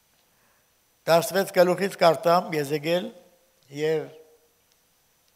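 An elderly man reads aloud slowly into a microphone.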